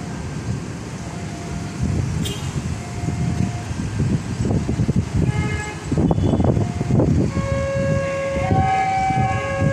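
A diesel locomotive approaches in the distance.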